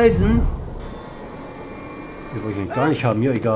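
A magic spell shimmers and crackles.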